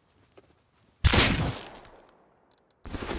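A gun fires a loud, short burst of shots.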